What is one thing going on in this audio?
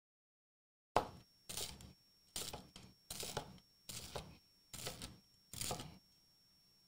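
A knife crunches through crusty bread.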